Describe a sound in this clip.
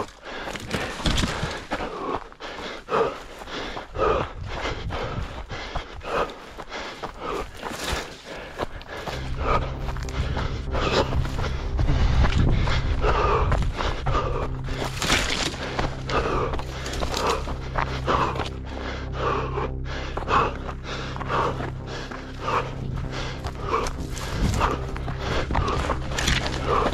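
Footsteps crunch quickly through dry brush and gravel.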